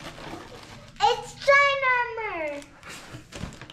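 A young girl squeals with excitement.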